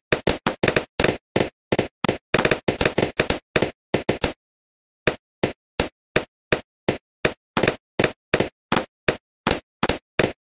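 Balloons pop in quick, sharp bursts.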